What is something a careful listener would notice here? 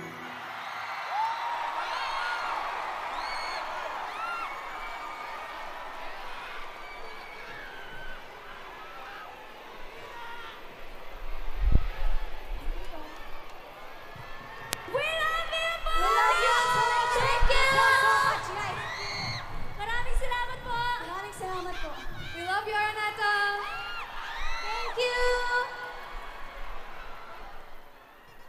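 A large crowd screams and cheers loudly in a big echoing hall.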